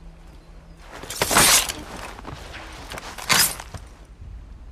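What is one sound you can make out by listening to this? A man cries out loudly as he is struck down.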